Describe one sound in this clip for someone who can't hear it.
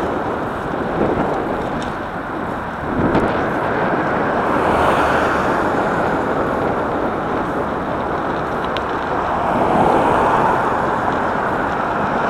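Wind rushes loudly past, outdoors at speed.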